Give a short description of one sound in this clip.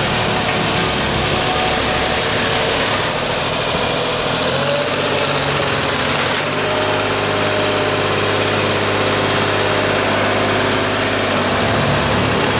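A road roller's drums rumble over concrete.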